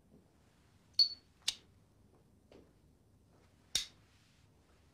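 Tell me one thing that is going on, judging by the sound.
A lighter clicks several times.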